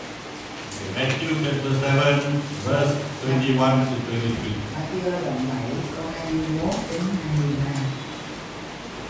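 An older man speaks calmly through a microphone in a room with a slight echo.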